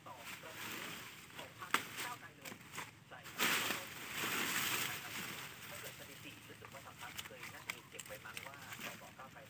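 Leaves rustle and crackle close by.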